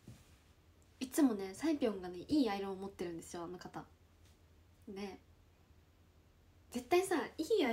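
A young woman speaks casually and close to a microphone, with pauses.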